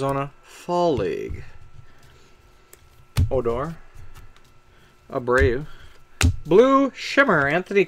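Trading cards rustle and slide as hands shuffle through them.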